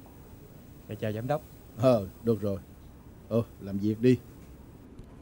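A young man speaks politely nearby.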